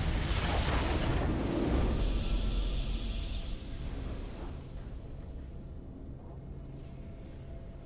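A triumphant victory fanfare plays and fades out.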